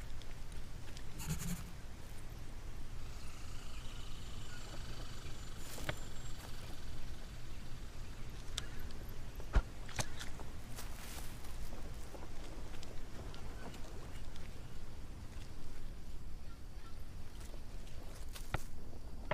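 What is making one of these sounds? Footsteps crunch on dry leaves and forest floor.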